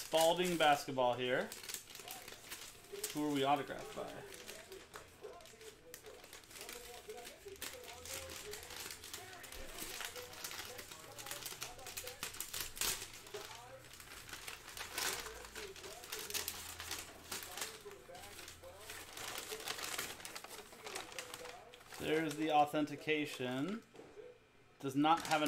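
Paper bags crinkle and rustle as they are handled.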